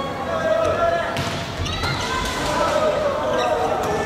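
A volleyball is struck hard.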